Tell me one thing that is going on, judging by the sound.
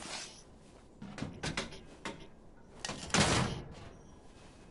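A metal gate rattles and clanks as it is pushed.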